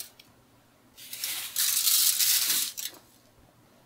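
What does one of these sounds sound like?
Seasoning is shaken from a shaker onto meat.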